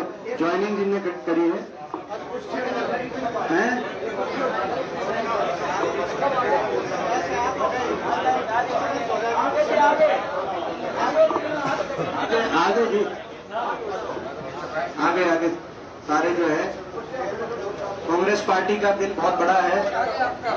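A man speaks into microphones with animation.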